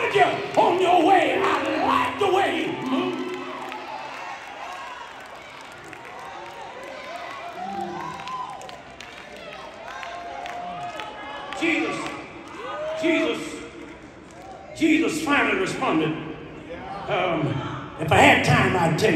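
Women clap and cheer loudly.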